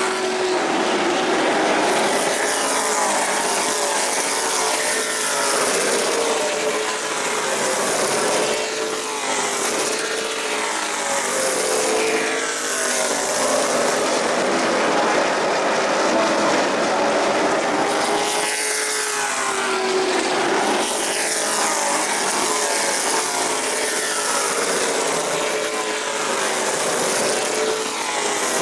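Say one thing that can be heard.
Race car engines roar loudly as cars speed past, rising and falling in pitch.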